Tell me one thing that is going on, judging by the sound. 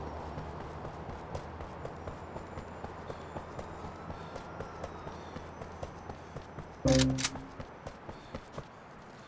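Footsteps tap quickly on a hard rooftop.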